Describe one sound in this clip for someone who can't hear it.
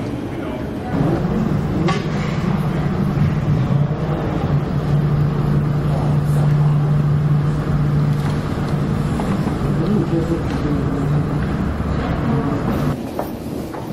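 A jet airliner taxis, its engines droning through window glass.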